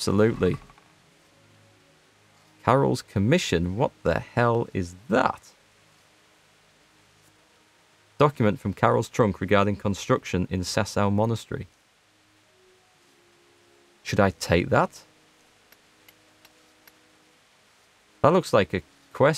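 A young man talks calmly into a close microphone, in bursts with pauses.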